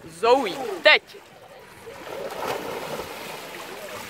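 Several people jump and splash into a pool.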